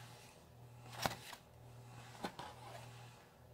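A paper page turns with a crisp rustle.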